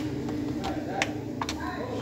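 Fingers press and click plastic laptop keys.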